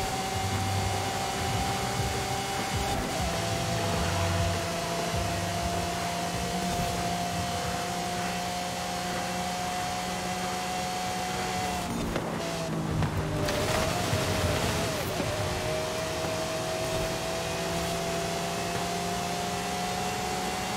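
A high-revving race car engine roars steadily at high speed.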